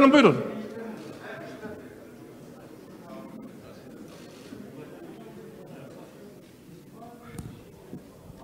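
Men murmur quietly in an echoing hall.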